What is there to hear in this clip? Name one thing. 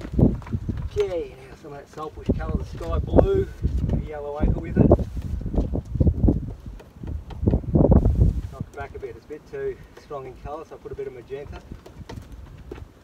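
A man talks calmly, close by, outdoors.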